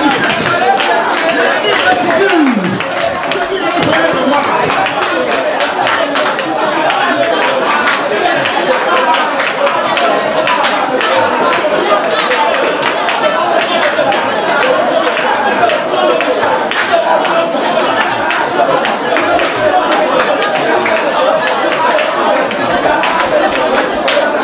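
People clap their hands in rhythm.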